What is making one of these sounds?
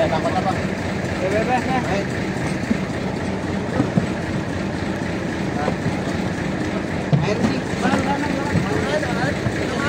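Plastic tubs knock and bump as they are lifted and moved.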